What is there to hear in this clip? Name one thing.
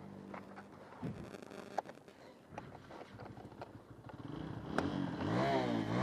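A motorcycle engine idles close by and revs up toward the end.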